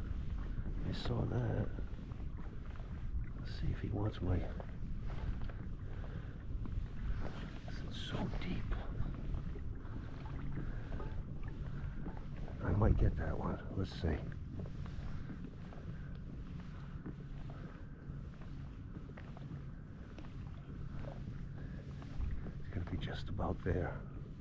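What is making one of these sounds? Water laps gently against a kayak.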